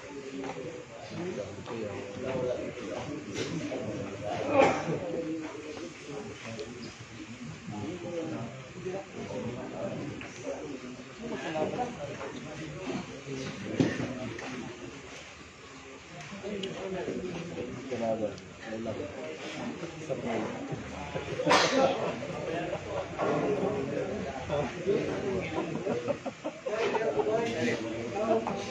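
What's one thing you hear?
Several men chat in the background.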